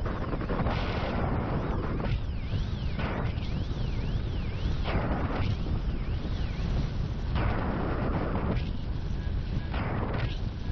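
Strong wind roars and buffets past the microphone in gusts.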